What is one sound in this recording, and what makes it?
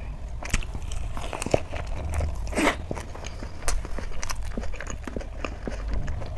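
A woman chews loudly and wetly up close.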